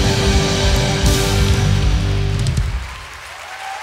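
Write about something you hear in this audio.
A band plays music loudly and comes to a final chord.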